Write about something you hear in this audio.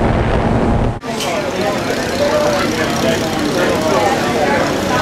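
A small propeller engine idles nearby.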